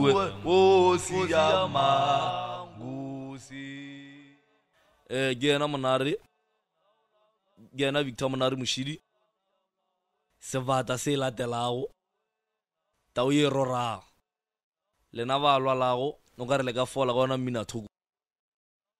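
A young man sings in short phrases.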